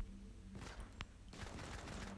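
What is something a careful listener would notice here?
An assault rifle fires a burst of shots.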